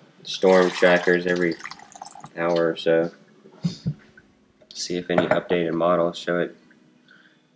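A young man talks animatedly close by.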